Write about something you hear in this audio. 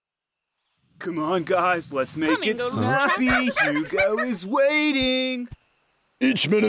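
A male bear talks loudly and with animation.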